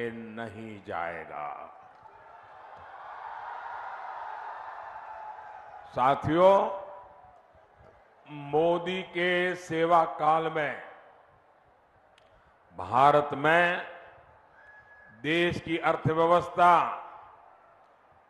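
An elderly man speaks forcefully through a microphone and loudspeakers.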